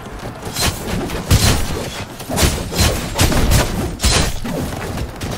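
Swords clash and strike hard again and again.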